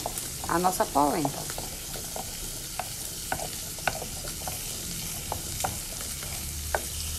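A thick sauce bubbles and squelches as it is stirred.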